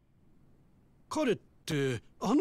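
A man speaks briefly, as if questioning someone.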